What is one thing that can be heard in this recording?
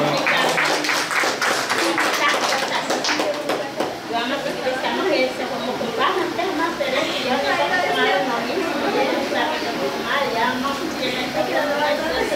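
Several women talk and murmur in the room.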